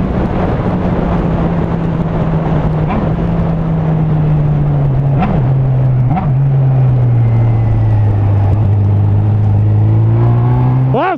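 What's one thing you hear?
A motorcycle engine hums steadily close by, shifting pitch as gears change.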